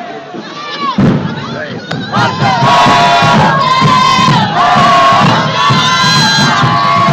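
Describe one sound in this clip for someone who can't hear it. Drums beat steadily in a marching band.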